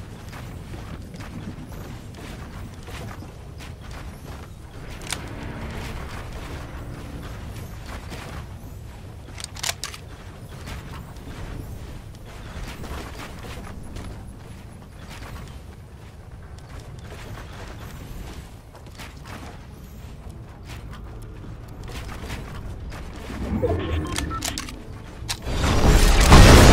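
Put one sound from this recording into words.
Footsteps thump on wooden floors.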